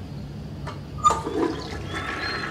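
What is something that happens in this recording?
A toilet lid bangs shut.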